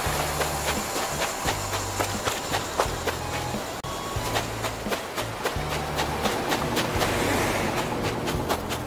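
Footsteps patter quickly on sand.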